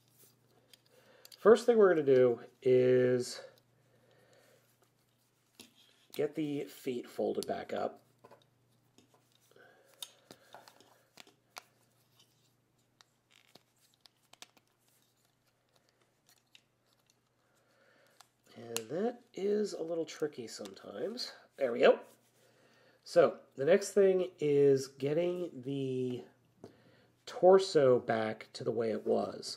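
Plastic toy parts click and snap as they are moved.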